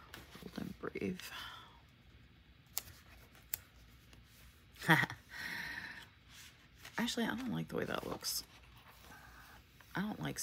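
A sticker is peeled off a backing sheet with a soft papery rustle.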